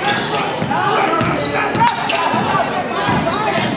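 A basketball bounces on the court floor.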